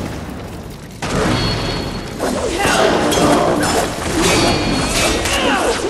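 Blades clash and slash in a fight.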